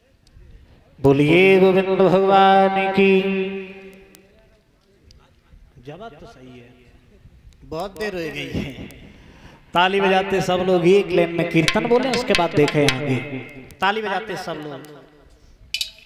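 A young man sings loudly into a microphone, heard through loudspeakers.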